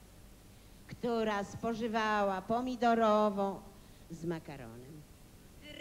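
A woman sings into a microphone over loudspeakers in a large hall.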